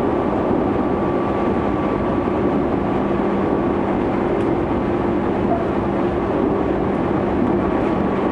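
The traction motors of an electric train whine in a steady tone.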